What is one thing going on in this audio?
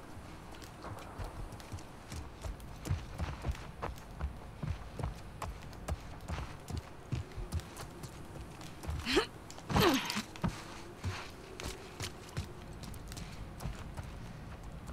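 Footsteps tread quickly across a wooden floor.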